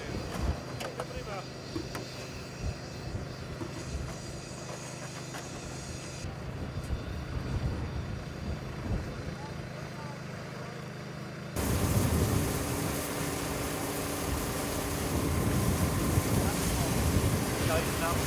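A truck engine hums steadily nearby.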